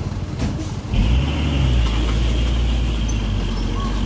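A truck engine revs up loudly.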